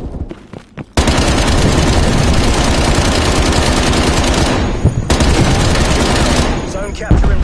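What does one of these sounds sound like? A heavy machine gun fires in rapid, loud bursts.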